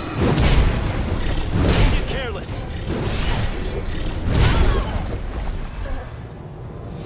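A huge beast roars and growls.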